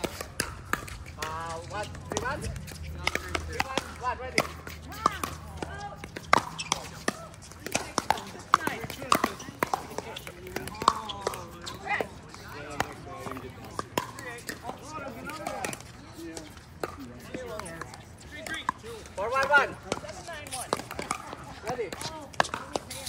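Paddles strike a plastic ball with sharp hollow pops.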